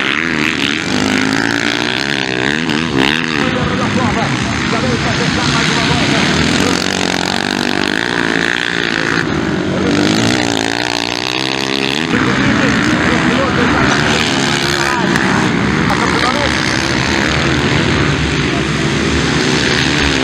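Dirt bike engines rev loudly as motorcycles race past.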